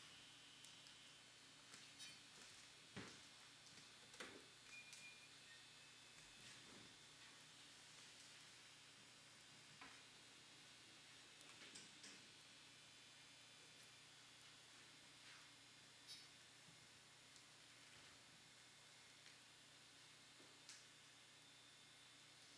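Hands tap and click on a small handheld device close to a microphone.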